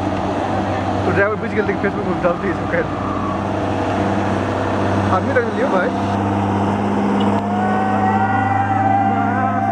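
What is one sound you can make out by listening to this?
A bus engine rumbles loudly as the bus passes close by.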